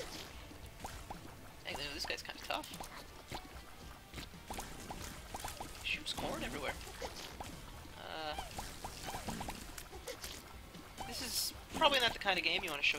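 Small wet shots pop and splat rapidly in a video game.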